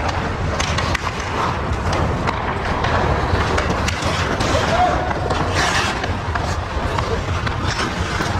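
Hockey sticks clack against a puck and each other on ice.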